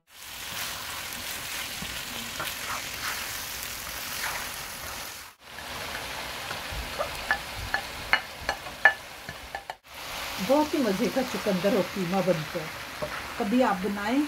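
A spoon scrapes against a frying pan while stirring.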